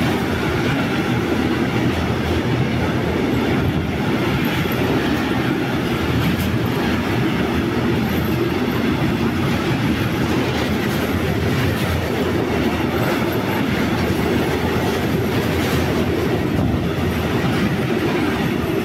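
A freight train rumbles past close by at speed.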